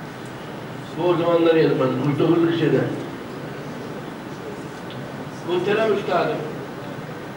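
An elderly man reads aloud slowly into a microphone, in short phrases.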